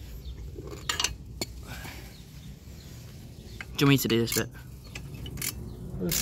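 Metal tools clink and scrape against an engine.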